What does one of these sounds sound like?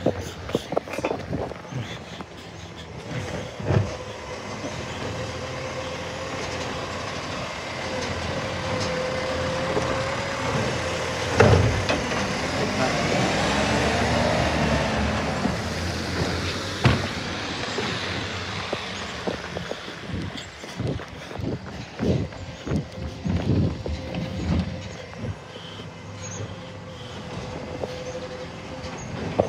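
A garbage truck engine rumbles and idles nearby.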